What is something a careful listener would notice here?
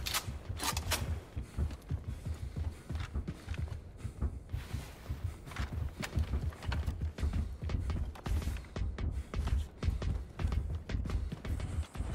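Heavy footsteps thud steadily.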